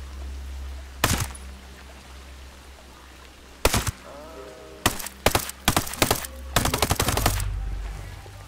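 Rapid gunshots ring out in bursts.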